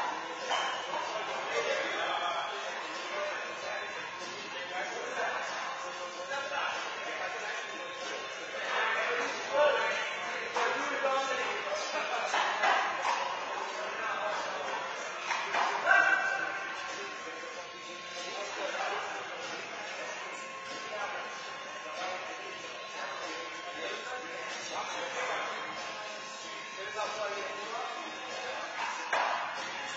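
A handball smacks against a wall in an echoing indoor court.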